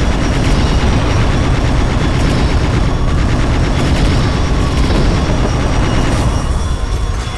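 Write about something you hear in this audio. Rapid laser guns fire in bursts.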